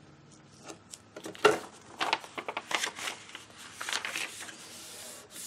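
Paper rustles and slides on a hard surface.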